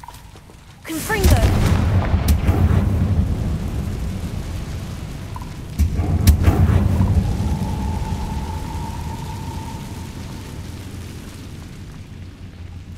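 Flames roar and crackle in loud bursts that slowly fade.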